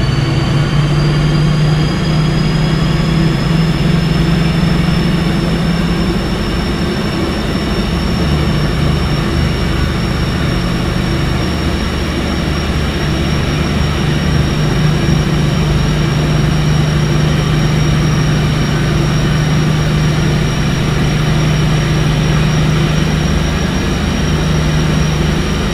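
Train wheels rumble and clatter on the rails.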